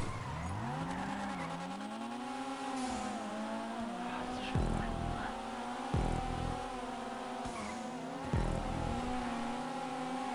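A car engine revs high and changes pitch as it races.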